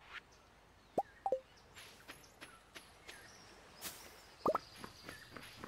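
Short electronic chimes blip from a game.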